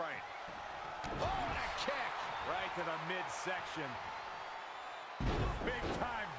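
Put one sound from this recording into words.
Bodies slam heavily onto a mat.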